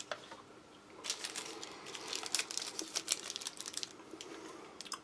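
A plastic sachet crinkles as it is handled.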